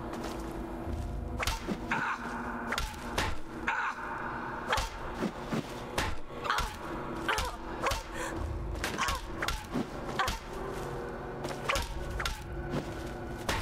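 A wooden club strikes a body with heavy thuds.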